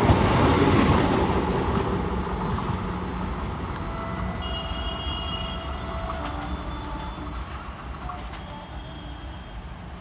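A train rolls away into the distance, its rumble fading.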